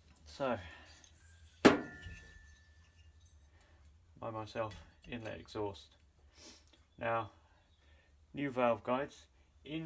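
Metal engine parts clink and knock against each other on a workbench.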